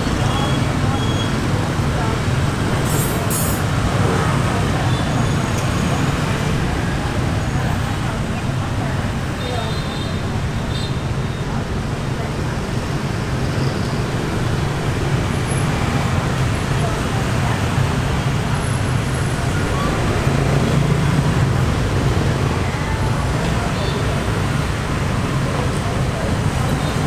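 Motorbikes rumble past in steady street traffic.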